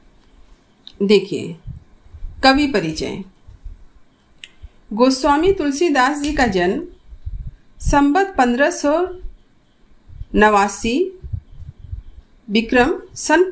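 A middle-aged woman speaks calmly and clearly into a microphone, reading out in phrases.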